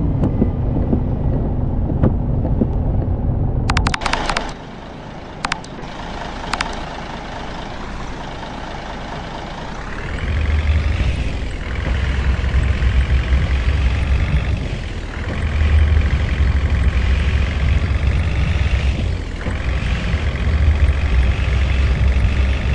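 A bus engine rumbles and revs up, dropping briefly at each gear change.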